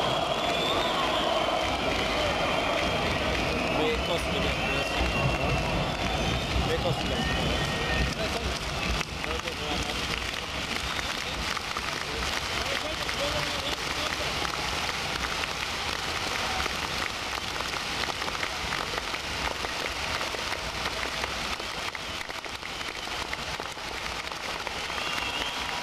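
A band plays loud live music in a large echoing arena.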